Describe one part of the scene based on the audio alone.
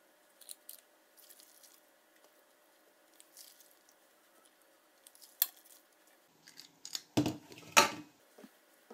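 A spoon scrapes and clinks against a metal bowl.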